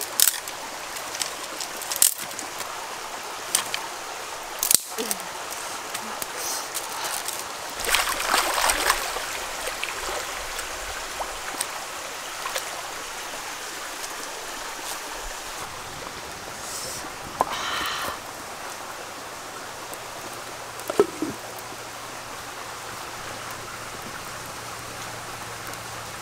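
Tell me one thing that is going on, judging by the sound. A stream flows and ripples.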